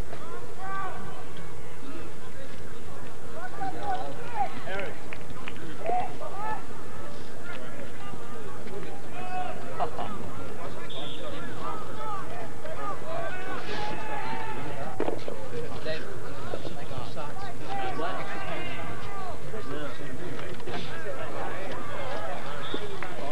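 Young players shout and call out to each other across an open field outdoors.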